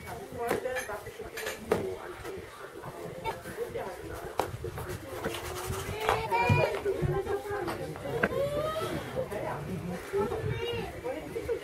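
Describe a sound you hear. A brush dabs and scrapes on a canvas.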